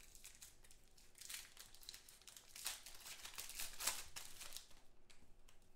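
Plastic wrapping crinkles and tears close by.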